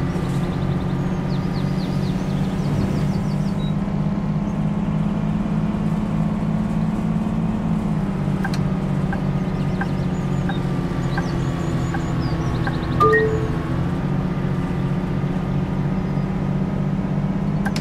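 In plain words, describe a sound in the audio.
A bus engine hums steadily as it drives.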